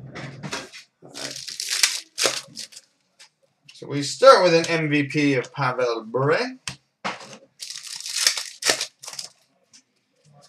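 Foil wrappers crinkle and tear as they are opened.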